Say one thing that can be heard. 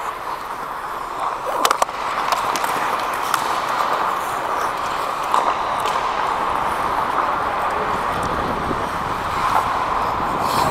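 Ice skates scrape and hiss across the ice in a large echoing rink.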